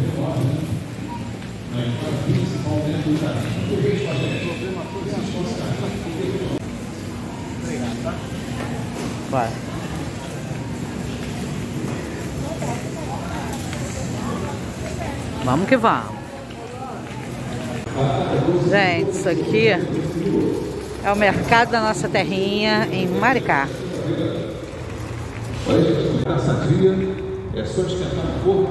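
A shopping cart rolls and rattles over a hard floor.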